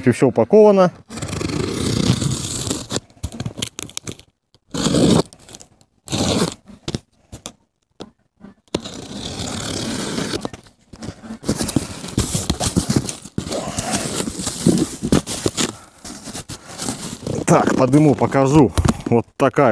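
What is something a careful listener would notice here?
Cardboard rustles and scrapes as a box is handled and opened.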